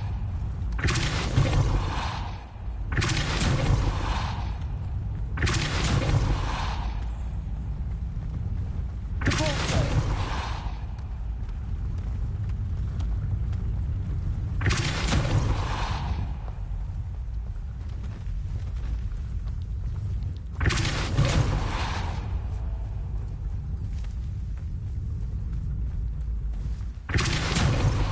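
A heavy stone ball rolls with a low, steady rumble.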